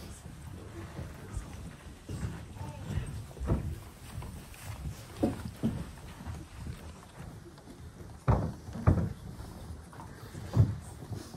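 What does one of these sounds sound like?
Footsteps thud on a floor as people walk past close by.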